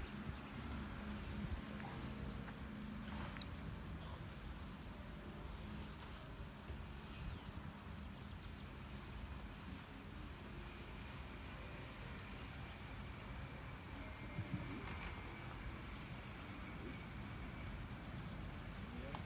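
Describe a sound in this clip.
A low murmur of people talking quietly comes from nearby.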